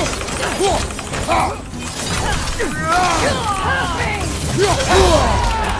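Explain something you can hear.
Swords clash and magic blasts crackle in a video game fight.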